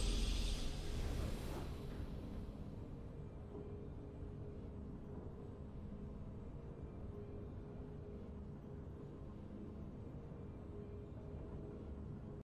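A triumphant game fanfare bursts out and fades into soft, steady music.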